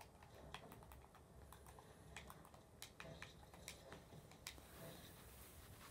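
Video game sound effects play from a television, with sharp pops and clicks.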